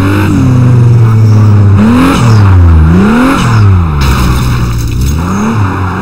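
A car engine roars and revs up and down as it races.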